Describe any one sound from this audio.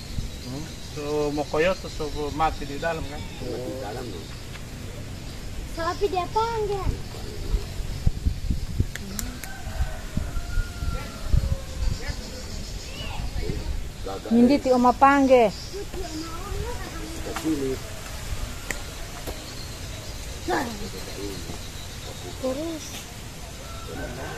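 Men talk nearby in calm, casual voices, outdoors.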